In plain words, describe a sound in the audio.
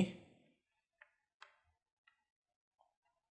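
Game pieces click softly on a board.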